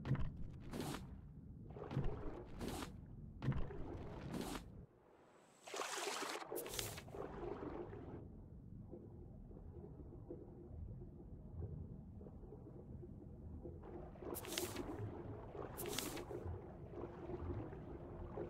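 Water splashes and swishes in short bursts.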